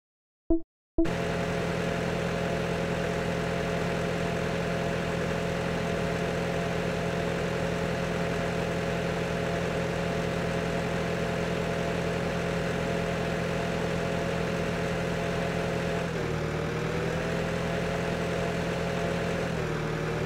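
A tractor engine hums steadily, dipping briefly in pitch as it turns.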